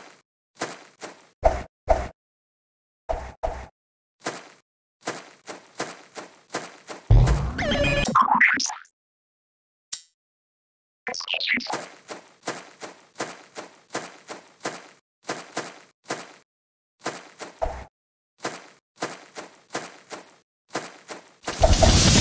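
Small game footsteps patter quickly over and over.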